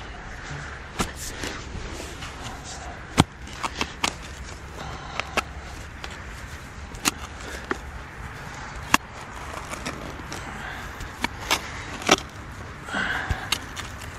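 A spade cuts and scrapes into soil, with sharp knocks.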